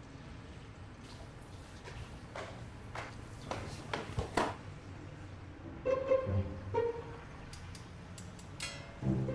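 Shoes tap on stone stairs indoors.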